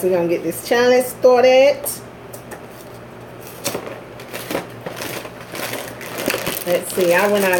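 Cardboard packaging rustles and tears as a box is opened.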